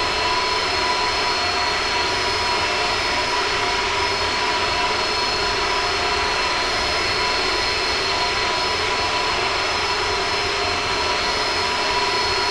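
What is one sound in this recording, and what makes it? Jet engines roar steadily as an airliner flies.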